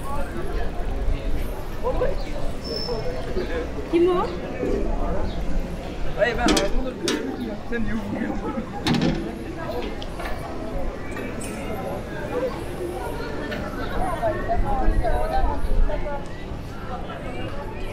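Voices of passers-by chatter outdoors in a busy open square.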